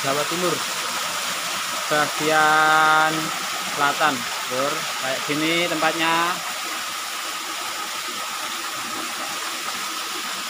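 Water trickles and splashes over rocks nearby.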